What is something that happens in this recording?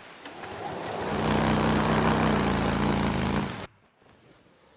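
A motorcycle engine revs and roars as it rides off.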